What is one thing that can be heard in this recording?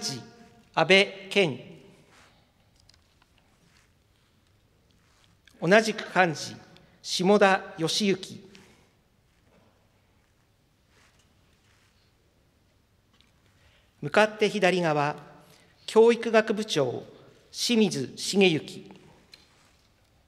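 A middle-aged man announces in short phrases through a microphone in a large echoing hall.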